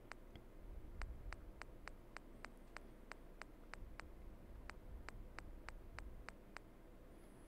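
Soft menu clicks tick in a quick run.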